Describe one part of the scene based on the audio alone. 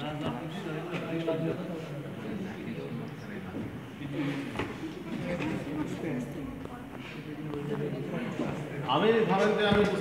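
Several men talk nearby, voices overlapping.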